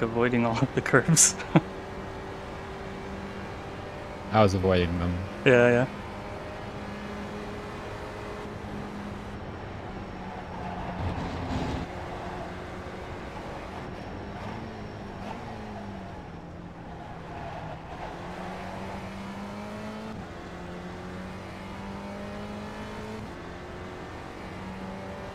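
A racing car engine drones steadily, its pitch shifting up and down with gear changes.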